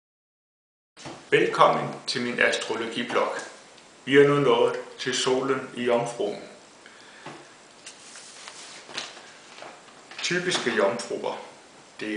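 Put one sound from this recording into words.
A young man talks calmly and close to the microphone.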